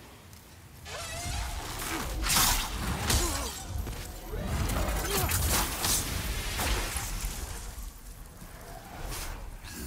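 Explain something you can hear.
A large winged beast shrieks and roars overhead.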